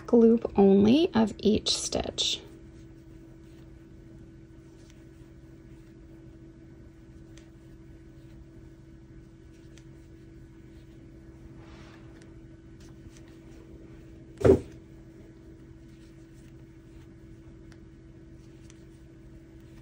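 A crochet hook softly pulls yarn through stitches.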